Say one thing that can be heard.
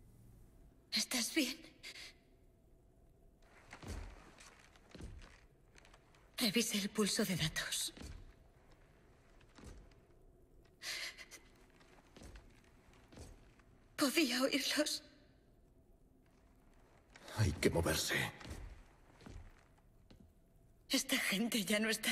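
A young woman speaks softly and anxiously nearby.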